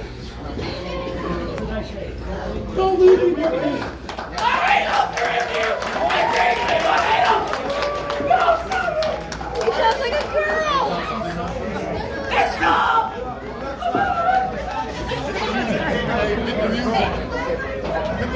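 A crowd cheers and shouts in an echoing hall.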